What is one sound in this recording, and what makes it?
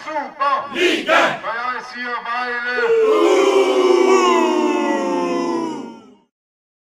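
A large crowd of fans chants and sings loudly together outdoors.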